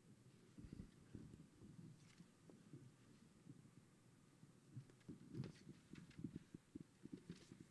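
A man murmurs quietly, away from the microphone.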